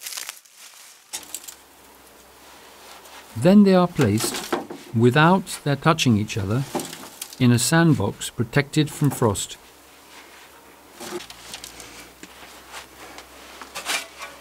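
Bulbs rustle and knock softly as they are handled.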